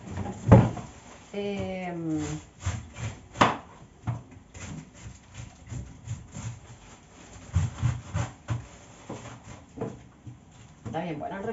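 A knife chops food on a board with quick knocks.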